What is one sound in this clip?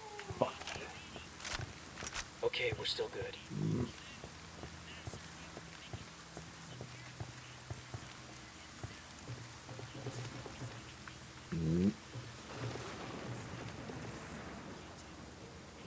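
Footsteps scuff softly on hard ground.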